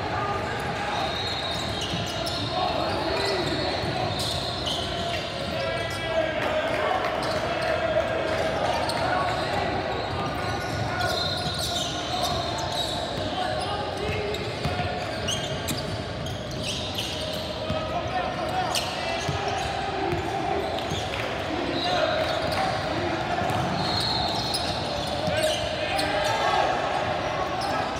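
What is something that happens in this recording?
Sneakers squeak sharply on a court in a large echoing gym.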